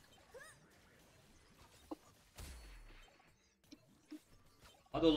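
Video game sound effects chime and whoosh.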